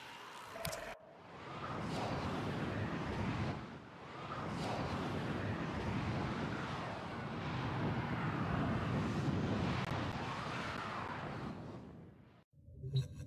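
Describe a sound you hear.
A spaceship roars steadily as it flies through the air.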